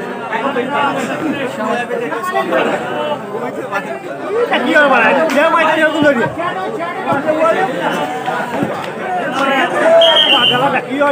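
A crowd of young men shout and cheer loudly outdoors.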